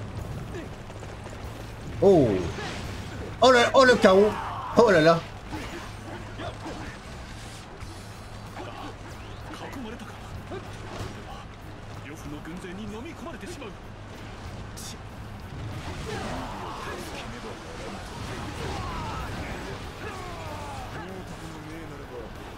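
Swords clash in a noisy battle.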